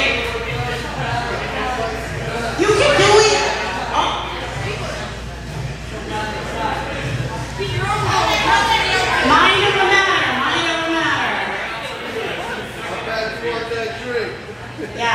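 A woman speaks with animation into a microphone, heard over loudspeakers in an echoing room.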